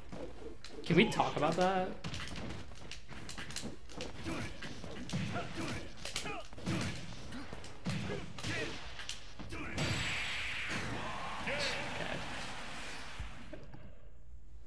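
Video game punches and blasts crack and thud.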